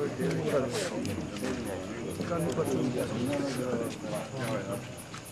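A man recites in a steady, melodic voice.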